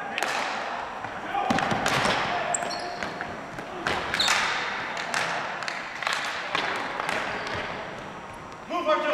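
Ball hockey sticks slap a plastic ball and clatter on a hardwood floor, echoing through a large gym.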